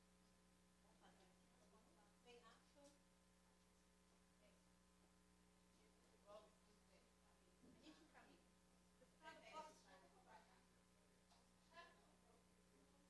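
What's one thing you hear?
Women talk quietly at a distance in a room.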